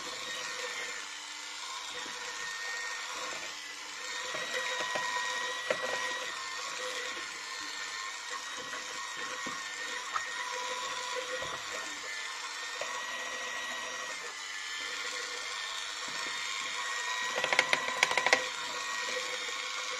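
An electric hand mixer whirs steadily.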